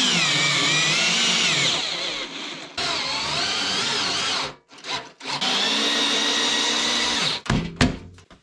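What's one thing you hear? A power drill whirs in long bursts, speeding up and slowing down.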